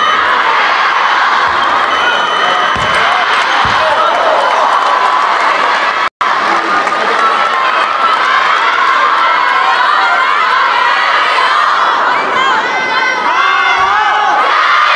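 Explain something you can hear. A crowd of spectators chatters steadily in a large echoing hall.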